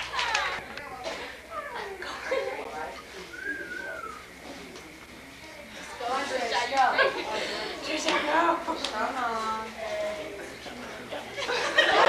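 A young woman talks and laughs.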